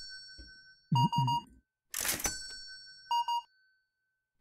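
An electronic till beeps in short bursts.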